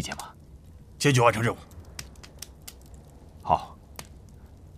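Several men answer together in a loud, firm chorus.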